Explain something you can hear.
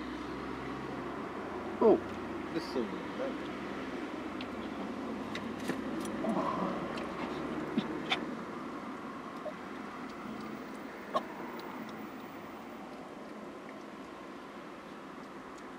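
A car engine idles with a low, steady hum from inside the car.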